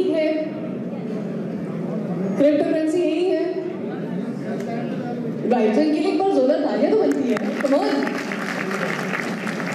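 A young woman speaks into a microphone, heard through loudspeakers in a large echoing room.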